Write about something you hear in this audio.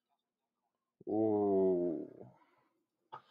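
A man speaks briefly and loudly into a headset microphone.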